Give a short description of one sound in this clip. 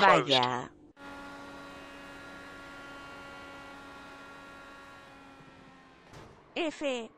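An open-wheel race car engine drones at a steady speed.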